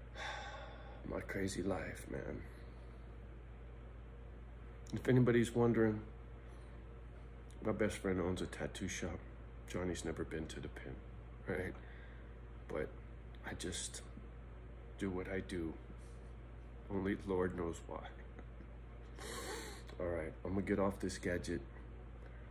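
A middle-aged man speaks calmly close to a microphone, in short phrases with pauses.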